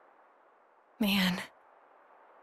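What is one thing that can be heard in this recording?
A young woman speaks briefly.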